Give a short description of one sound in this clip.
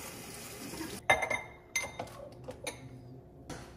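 Coffee pours from a carafe into a mug.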